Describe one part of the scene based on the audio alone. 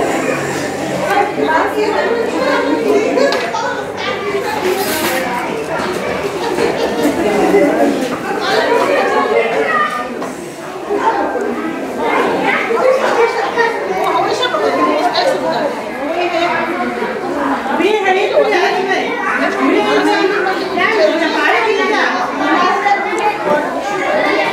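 Several women chatter nearby.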